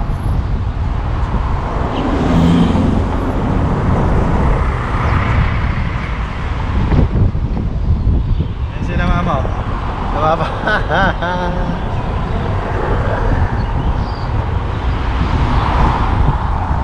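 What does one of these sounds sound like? Wind buffets loudly past an open car window.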